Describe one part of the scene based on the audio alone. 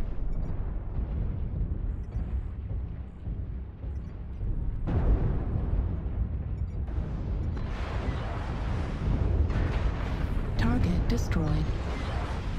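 Weapons fire in loud bursts.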